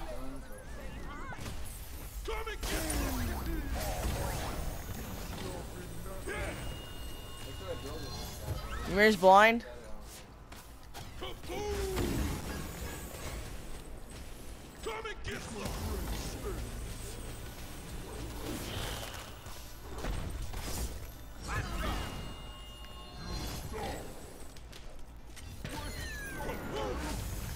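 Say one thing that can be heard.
Game spells burst and clash with whooshing and crackling effects.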